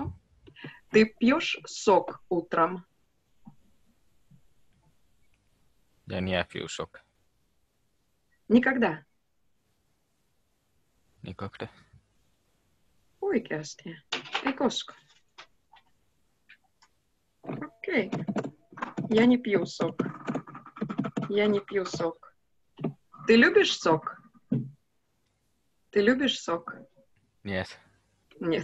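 A young woman speaks calmly in short phrases over an online call.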